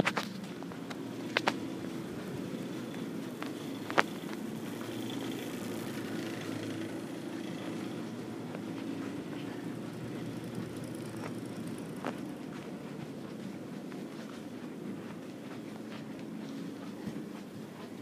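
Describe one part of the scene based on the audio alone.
Footsteps fall softly on carpet.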